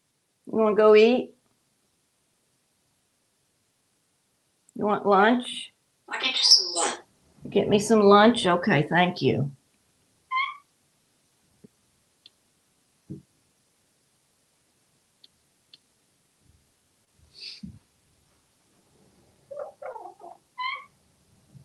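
A parrot chatters and mimics speech in a loud, voice-like way.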